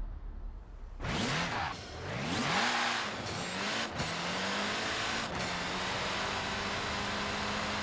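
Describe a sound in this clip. A racing car engine revs hard and climbs through the gears as the car speeds up.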